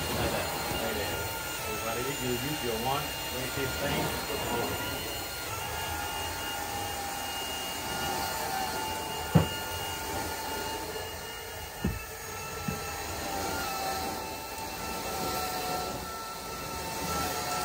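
A cleaning wand sucks and hisses across carpet.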